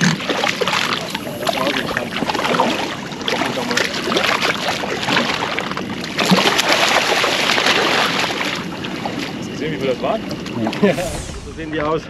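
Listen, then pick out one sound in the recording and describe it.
Water splashes and churns as a fish thrashes at the surface.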